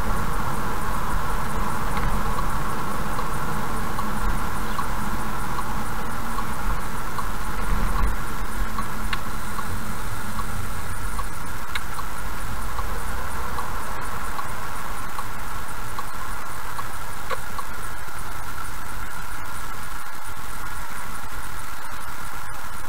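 A car's tyres rumble on the road, fading as the car slows down.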